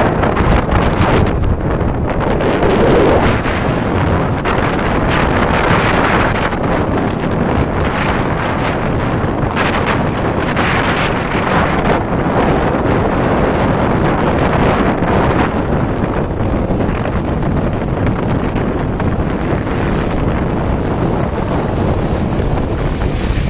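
Wind rushes loudly past a moving motorcycle.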